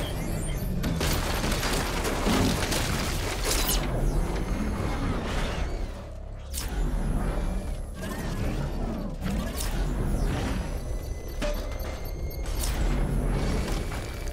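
Metal crashes and bangs as a vehicle smashes through debris.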